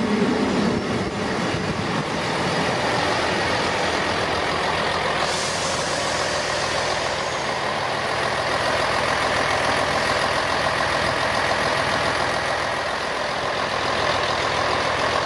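A diesel train rumbles and hums steadily as it pulls slowly past up close.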